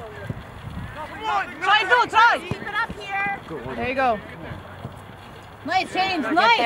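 Players shout across an open field outdoors.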